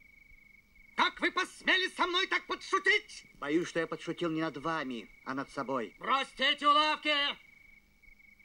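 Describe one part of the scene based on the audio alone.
A man speaks loudly and theatrically, close by.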